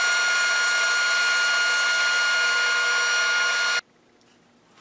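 A band saw hums steadily and then stops.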